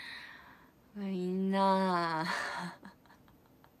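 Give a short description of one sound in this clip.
A young woman speaks close to a microphone, with a rising, drawn-out voice.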